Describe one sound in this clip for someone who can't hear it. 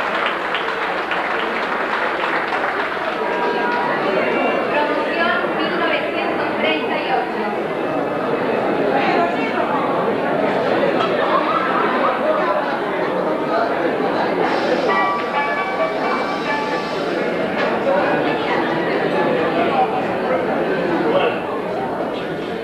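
A large crowd of adults chatters loudly in an echoing hall.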